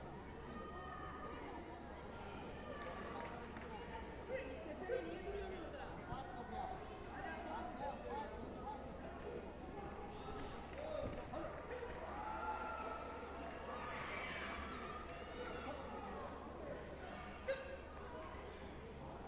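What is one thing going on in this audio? Men and women talk and call out in a large echoing hall.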